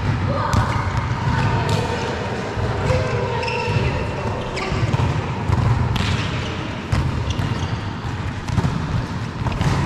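Players call out to each other in a large echoing hall.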